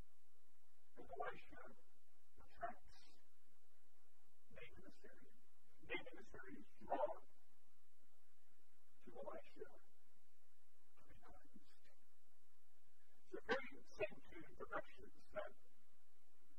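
A middle-aged man speaks calmly through a microphone in short phrases with pauses, in a large echoing hall.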